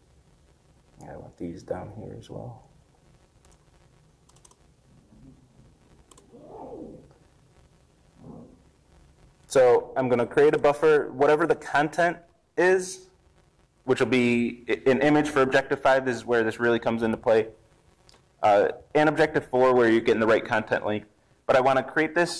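A man speaks calmly through a microphone, explaining at length.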